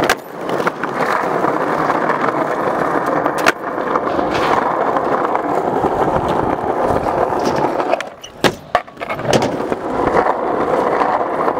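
Skateboard wheels roll and rumble loudly over rough concrete.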